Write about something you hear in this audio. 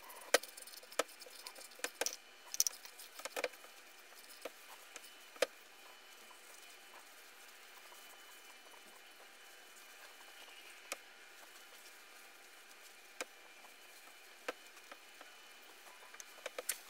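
A wooden bowl knocks and scrapes on a wooden board.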